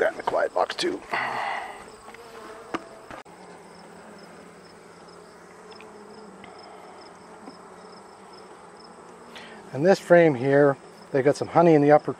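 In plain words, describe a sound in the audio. Honeybees buzz in a steady, low hum close by.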